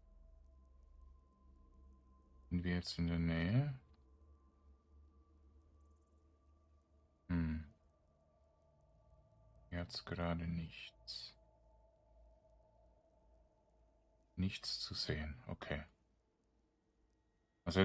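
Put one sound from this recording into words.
Magic spells hum softly and steadily.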